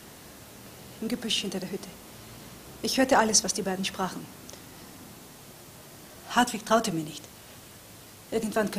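A woman speaks calmly in short phrases close by.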